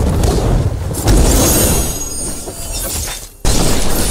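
A blade swooshes sharply through the air.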